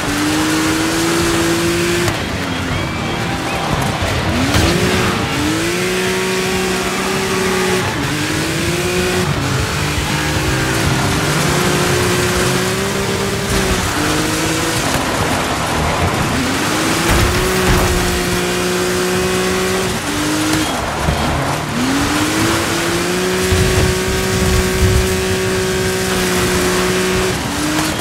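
A buggy engine revs high, dropping and rising as the gears shift.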